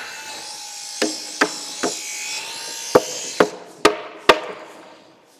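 A hammer knocks sharply on a chisel in wood.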